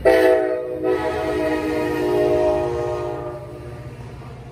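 A train horn blares loudly, then stops.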